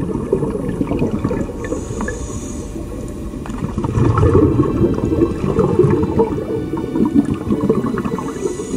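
Bubbles gurgle and rumble underwater.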